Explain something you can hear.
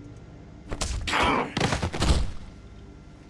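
A wooden stool is knocked and clatters loudly.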